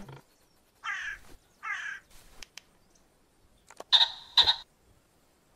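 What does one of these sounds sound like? Pheasants call in short bursts.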